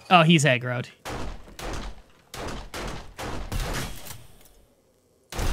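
Several gunshots ring out in quick succession.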